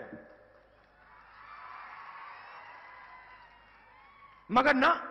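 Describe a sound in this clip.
A crowd cheers and murmurs.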